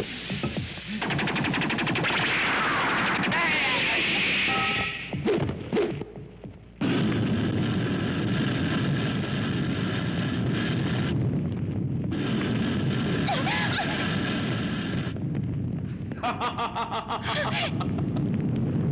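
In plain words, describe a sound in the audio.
A jet of flame roars and crackles.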